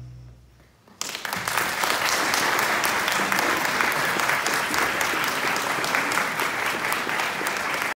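An audience applauds loudly in a large echoing room.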